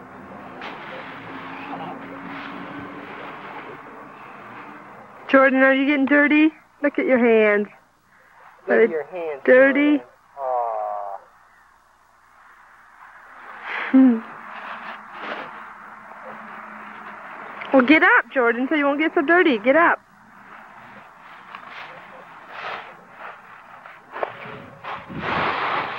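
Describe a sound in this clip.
Dry leaves rustle and crunch as a small child plays in them.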